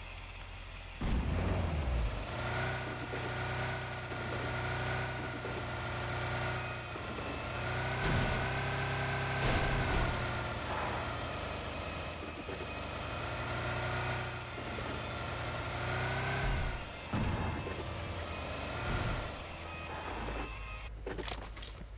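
A car engine hums and revs as the car drives over rough ground.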